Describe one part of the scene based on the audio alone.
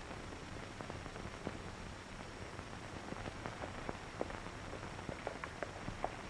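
Horses' hooves thud on dirt at a distance.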